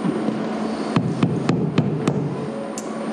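A hammer taps sharply on metal in quick blows.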